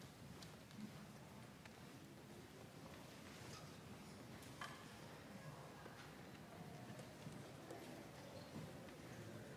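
A concert band plays together in a large echoing hall.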